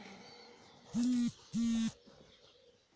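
A cordless drill whirs in two short bursts.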